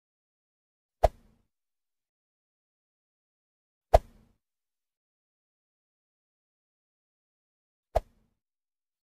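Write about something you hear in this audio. A finger taps a touchscreen with sharp clicks.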